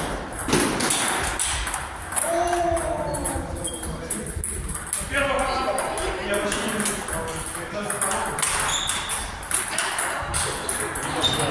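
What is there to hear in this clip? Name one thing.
A ping pong ball clicks back and forth across a table.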